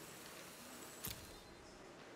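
A game sound effect makes a sharp thud.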